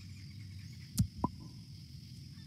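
A game menu closes with a sharp click.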